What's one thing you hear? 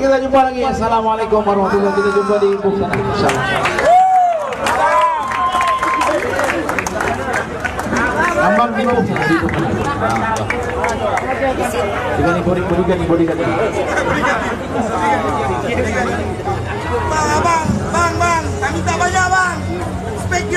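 A young man sings loudly through a microphone over loudspeakers.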